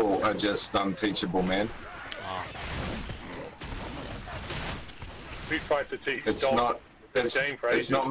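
An axe strikes and hacks into bodies.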